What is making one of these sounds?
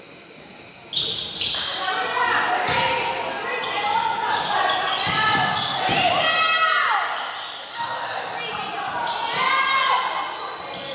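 Spectators shout and cheer.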